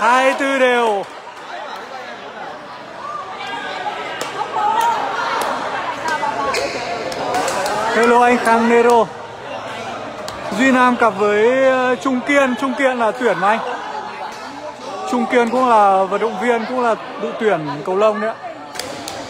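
A young man calls out loudly and with animation in an echoing hall.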